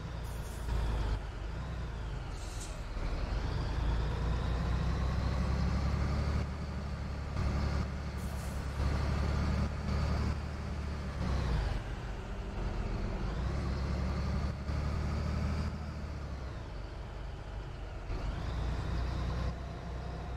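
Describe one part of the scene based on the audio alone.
A bus engine drones steadily, rising and falling in pitch.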